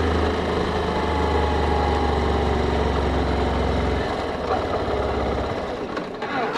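A motorcycle engine hums steadily up close, then fades away as the throttle is released.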